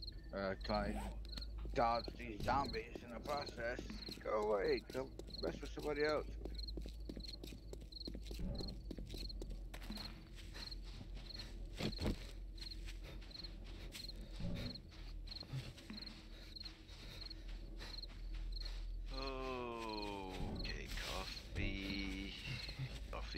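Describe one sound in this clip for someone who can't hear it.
Footsteps crunch steadily on dry, stony ground.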